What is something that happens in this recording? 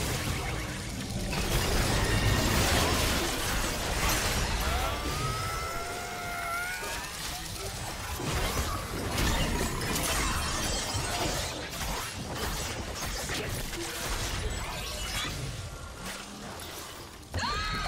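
Magic blasts whoosh and crackle in a busy fight.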